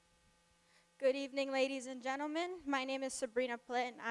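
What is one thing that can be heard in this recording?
A young woman sings through a microphone and loudspeakers.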